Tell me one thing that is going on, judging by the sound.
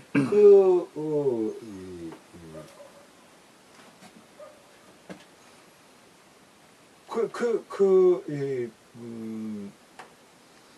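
An elderly man speaks calmly and slowly, close by, with pauses.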